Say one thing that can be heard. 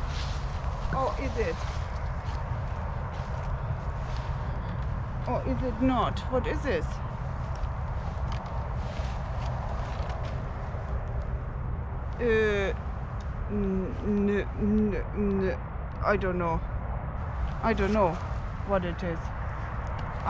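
An elderly woman speaks calmly close by.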